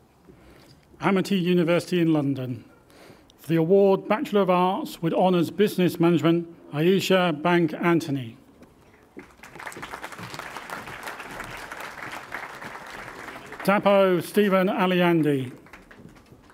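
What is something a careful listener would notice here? A man reads out names through a loudspeaker in a large echoing hall.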